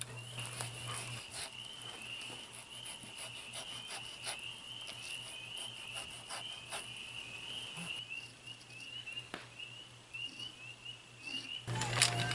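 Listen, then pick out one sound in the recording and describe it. A knife scrapes and slices through fish skin.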